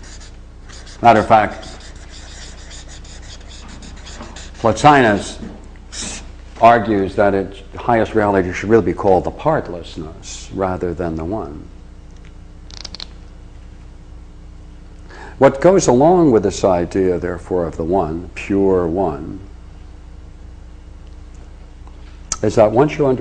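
An elderly man speaks calmly, in short bursts with pauses.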